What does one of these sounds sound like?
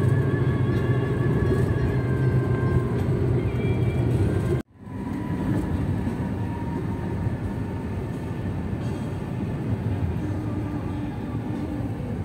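Car tyres rumble steadily on a road.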